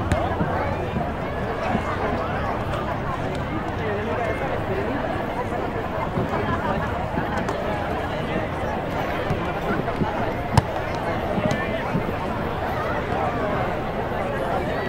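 A large crowd of men and women chatters all around, close by and outdoors.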